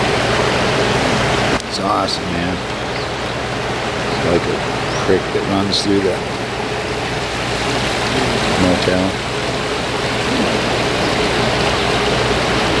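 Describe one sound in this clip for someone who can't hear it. A shallow stream babbles and rushes over rocks close by.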